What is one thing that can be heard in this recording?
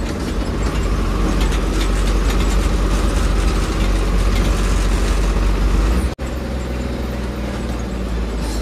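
A heavy diesel engine rumbles steadily from close by.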